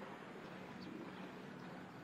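A person wades through knee-deep floodwater, water swishing around the legs.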